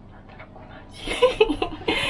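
A young woman laughs brightly.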